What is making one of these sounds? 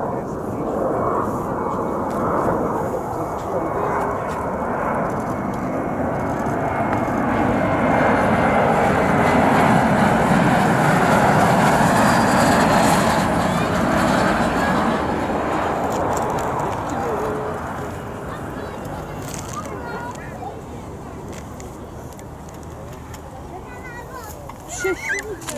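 A jet engine roars loudly as a plane approaches, then fades after it lands.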